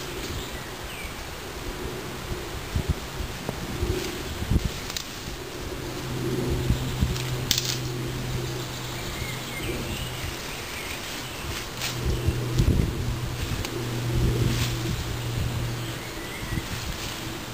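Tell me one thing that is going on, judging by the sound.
Leaves rustle and twigs snap as a person moves through brush close by.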